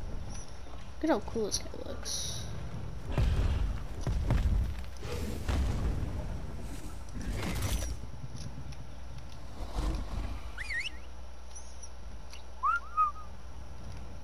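Large creatures growl and thud as they fight.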